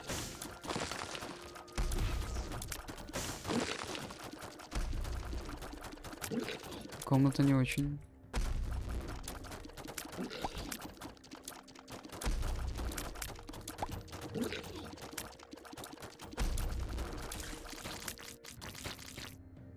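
Small watery shots pop rapidly, again and again.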